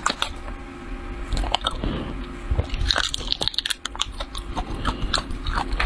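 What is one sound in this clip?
Plastic wrapping crinkles close to a microphone.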